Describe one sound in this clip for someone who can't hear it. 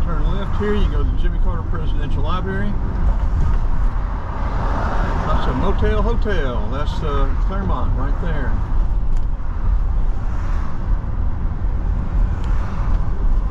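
A car engine hums steadily with a low road rumble.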